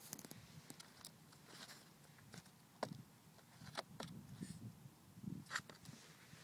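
Small plastic plugs click as they are pushed together.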